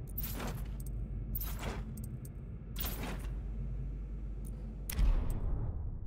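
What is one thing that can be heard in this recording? Short user-interface blips sound as menu items are selected.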